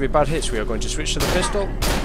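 A gun fires a loud shot.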